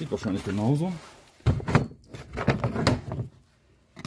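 A plastic panel snaps loose and is pulled away.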